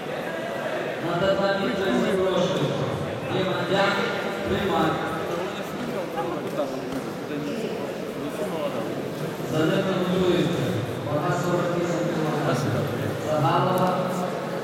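Men shout loudly in a large echoing hall.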